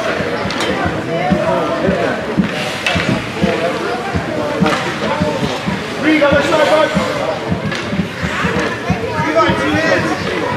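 Children shout and call out across an open ice rink.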